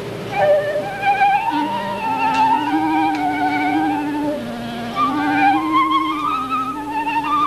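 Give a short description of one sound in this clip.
A flute plays a lively melody with vibrato through a microphone.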